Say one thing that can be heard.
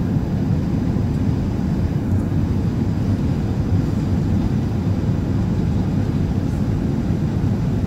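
A jet engine roars steadily in a low, deep rumble.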